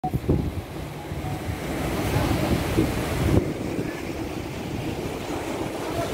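Waves splash and churn against rocks close by.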